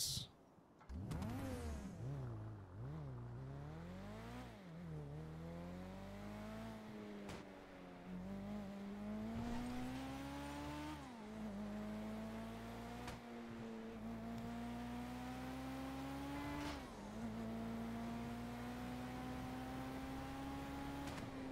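A sports car engine accelerates, shifting up through the gears.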